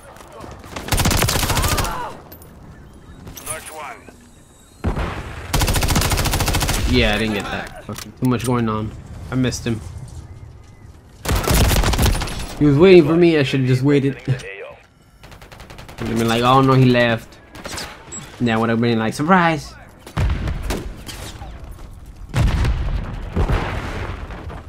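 Rifle fire rattles in rapid bursts.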